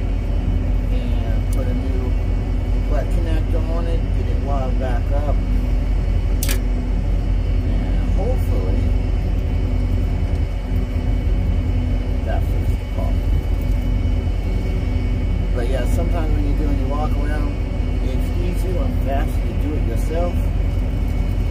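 A man talks close to the microphone.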